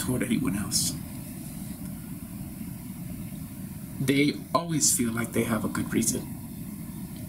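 A man speaks calmly and closely, with pauses.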